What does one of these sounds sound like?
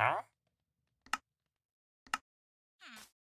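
Sharp clicks sound twice.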